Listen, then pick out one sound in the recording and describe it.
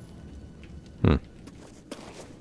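A heavy thump sounds as someone jumps and lands.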